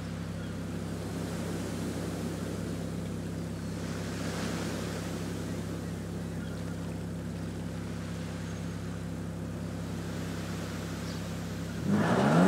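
A sports car engine idles with a steady low hum.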